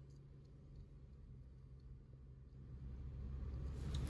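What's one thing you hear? A car engine hums, heard from inside the car.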